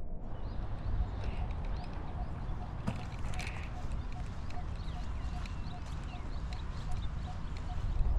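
A golf cart's wheels roll along a paved path.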